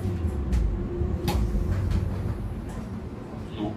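Metal parts of a subway car clank and rattle.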